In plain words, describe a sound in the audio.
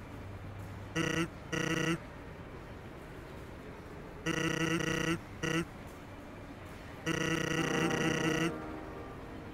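Rapid electronic blips chatter in short bursts, like a game character's talking sound.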